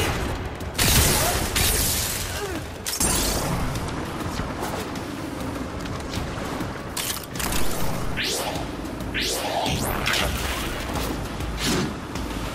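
Rapid weapon fire bursts out in loud, noisy blasts.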